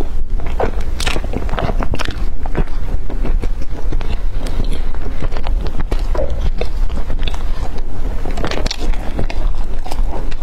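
Crispy pastry crackles as a young woman bites into it.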